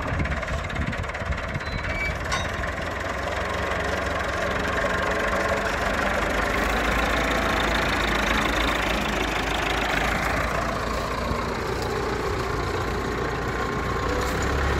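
A tractor's diesel engine idles close by with a steady low rumble.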